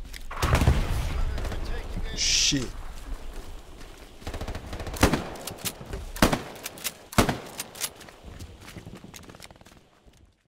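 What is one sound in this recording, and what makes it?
Gunshots crack sharply, again and again.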